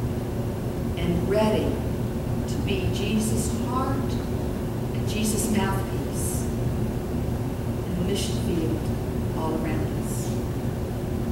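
A woman speaks with animation through a microphone in a large echoing room.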